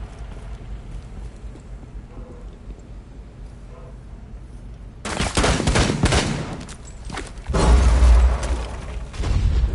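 Footsteps clank up metal stairs.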